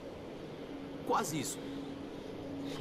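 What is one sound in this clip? A young man answers calmly.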